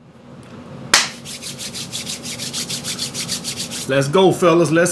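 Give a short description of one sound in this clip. A man rubs his hands together rapidly.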